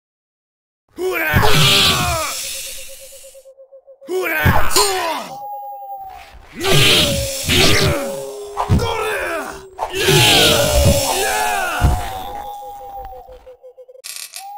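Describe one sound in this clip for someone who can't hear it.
Steel swords slash and clash.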